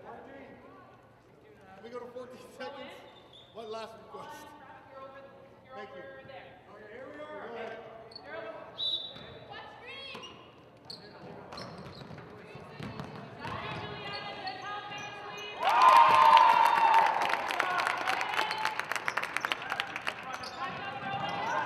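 Young women call out to each other across a large echoing gym.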